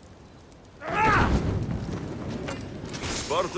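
A fire flares up and crackles.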